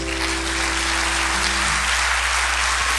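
An acoustic guitar chord rings out and fades.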